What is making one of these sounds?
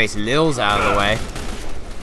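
An explosion bursts with a loud bang.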